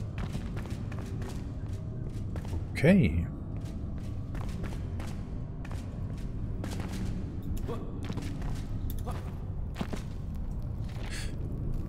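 Armoured footsteps clank steadily on a stone floor.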